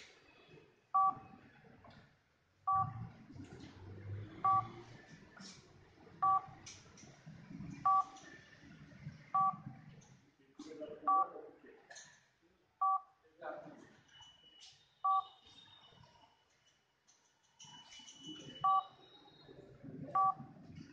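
A phone gives short electronic beeps, again and again.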